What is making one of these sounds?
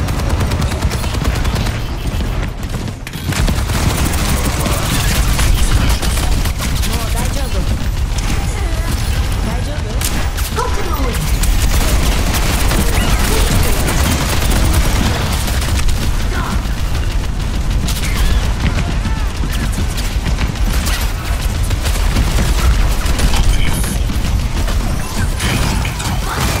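Gunfire and explosions from a game crackle and boom.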